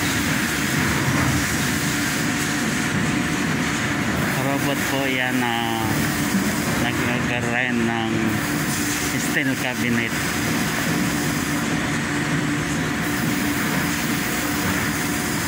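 Industrial machinery hums and rattles steadily in a large, echoing hall.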